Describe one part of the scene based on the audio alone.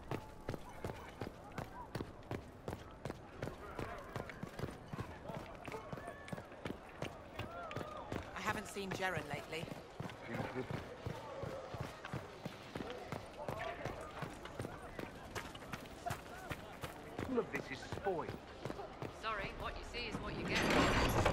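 Quick footsteps run over stone.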